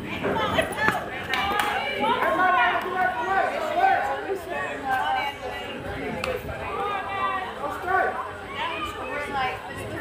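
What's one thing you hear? Young women shout and cheer with animation, outdoors.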